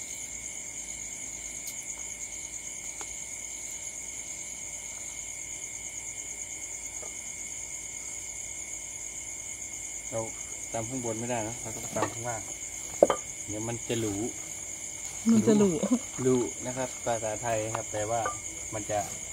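A small charcoal fire crackles softly.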